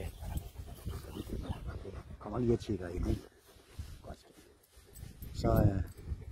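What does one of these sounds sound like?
Hands rub and pat a dog's fur.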